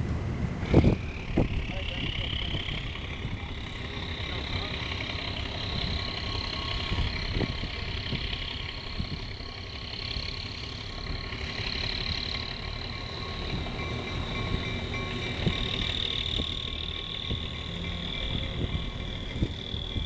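A diesel locomotive engine rumbles and idles nearby.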